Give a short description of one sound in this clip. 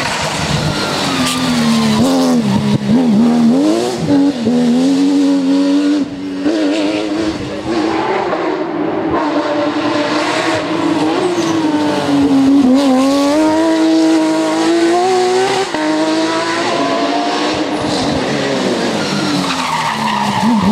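A racing car engine roars loudly, revving up and down as it speeds past.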